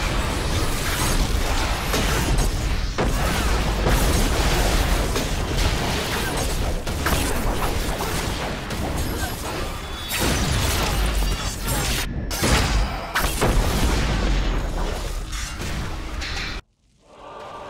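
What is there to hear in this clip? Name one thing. Magic spells crackle and boom in a busy fight.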